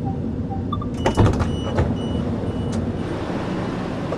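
Train doors slide open.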